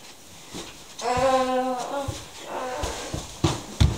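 A young boy cries out loudly nearby.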